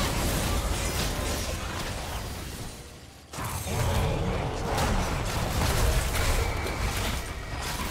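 Game spell effects crackle and burst in a fast battle.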